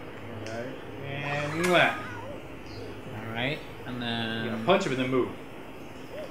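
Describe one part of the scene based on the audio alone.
A young man talks and exclaims excitedly nearby.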